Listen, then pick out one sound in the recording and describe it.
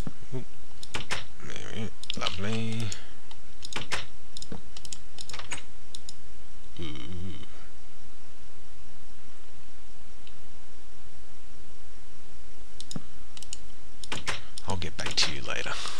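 Wooden blocks are set down with soft knocks.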